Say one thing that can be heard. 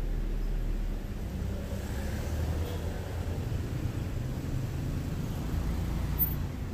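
A car pulls away from the kerb.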